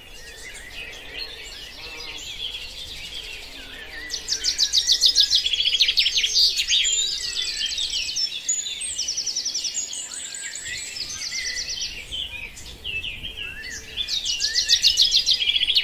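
A pigeon coos softly nearby.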